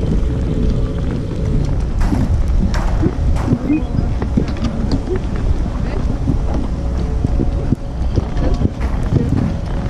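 Wind blows steadily, rumbling against the microphone.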